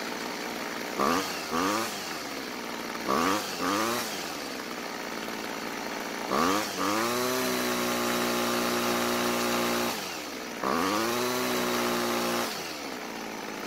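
A small two-stroke engine revs up sharply and drops back, again and again, with a long high whine near the end.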